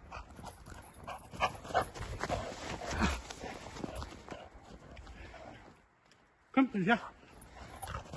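A dog's paws patter quickly across snow.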